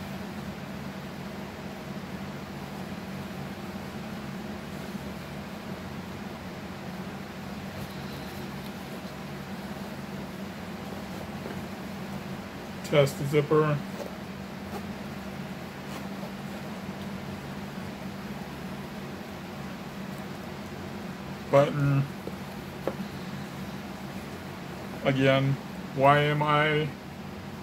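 Fabric rustles as a man handles clothing.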